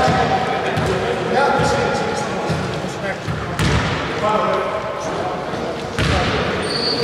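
Sneakers squeak on a wooden court in an echoing hall.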